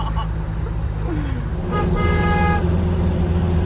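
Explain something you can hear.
A young man laughs heartily.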